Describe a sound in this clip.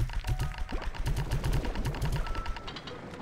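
A vacuum gun sucks with rapid thumping bursts.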